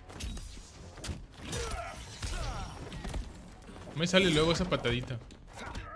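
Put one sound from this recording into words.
Punches and kicks thud in a fight.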